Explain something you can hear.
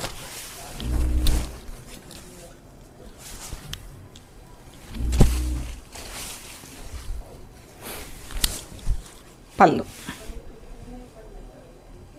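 Fabric rustles and swishes as a cloth is unfolded and shaken.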